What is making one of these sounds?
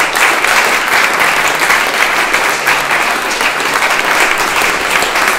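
An audience applauds steadily in an echoing hall.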